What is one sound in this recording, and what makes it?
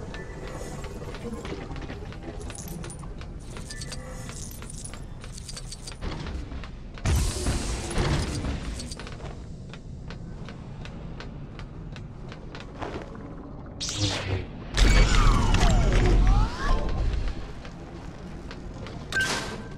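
Quick footsteps patter on a hard metal floor.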